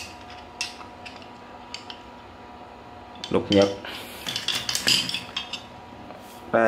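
Metal chisel blades clink and knock against each other.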